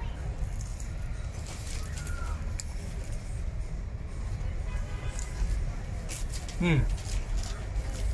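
A man chews food with his mouth full.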